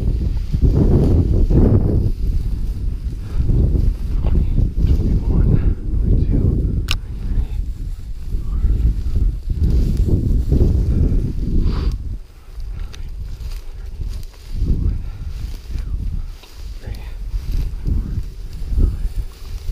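Footsteps swish and crunch through dry grass.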